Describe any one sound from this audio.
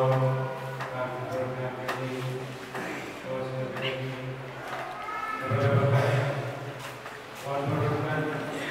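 A middle-aged man speaks steadily into a microphone, heard through a loudspeaker in an echoing room.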